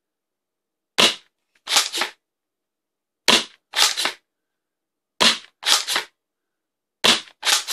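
An airsoft gun fires single shots, each with a sharp snap and a quick mechanical clatter.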